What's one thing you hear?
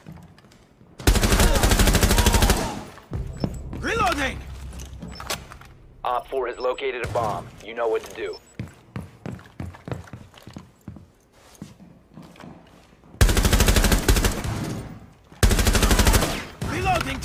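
A rifle fires loud, rapid bursts close by.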